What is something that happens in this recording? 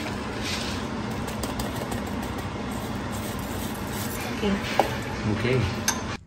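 Dry crumbs are sprinkled into a bowl.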